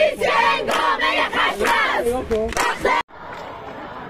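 A crowd of young people chants loudly and close by.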